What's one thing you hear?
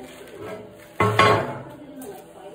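A metal plate clanks down onto a steel beam.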